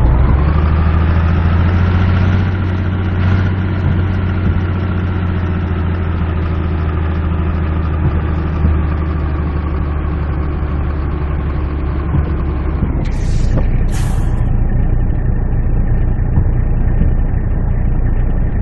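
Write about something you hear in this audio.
A heavy truck engine rumbles steadily, then drops to a low idle.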